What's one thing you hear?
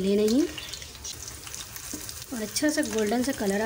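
Metal tongs scrape and tap against a pan.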